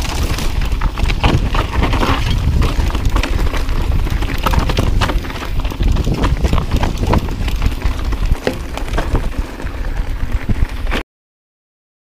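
Wind rumbles loudly past.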